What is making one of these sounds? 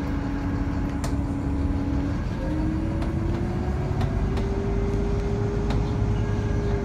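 A train's motor hums steadily as the train moves, its pitch slowly rising.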